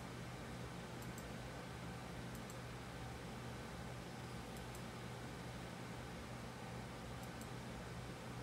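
A computer mouse clicks softly.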